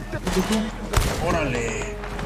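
A gunshot cracks sharply.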